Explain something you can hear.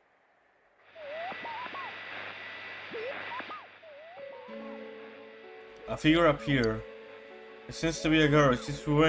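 A television hisses with static.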